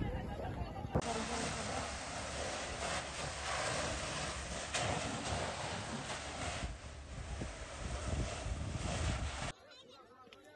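A fire hose sprays water with a loud, steady rushing hiss.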